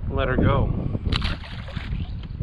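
A fish splashes into the water.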